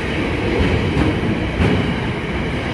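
Wheels knock sharply over rail joints.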